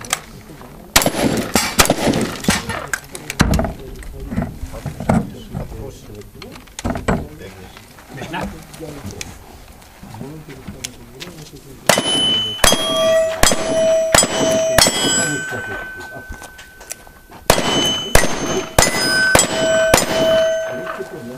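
Gunshots crack out in quick bursts outdoors.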